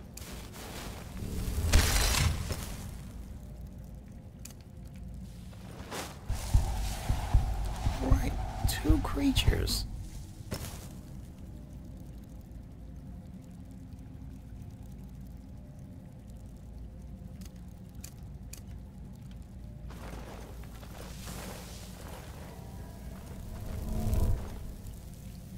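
A magic spell whooshes and crackles as it is cast.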